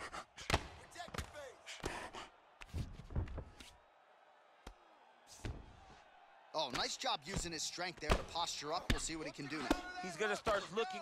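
Heavy punches thud against a body again and again.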